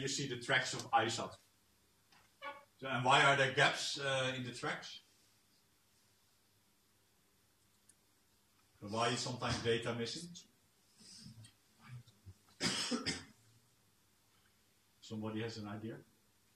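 A man lectures calmly, speaking in bursts with pauses.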